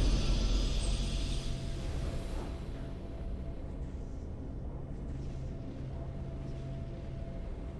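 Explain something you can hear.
Triumphant game music swells and then fades to a quiet hum.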